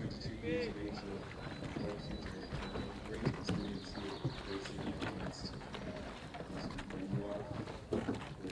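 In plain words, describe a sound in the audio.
Oars splash softly in calm water.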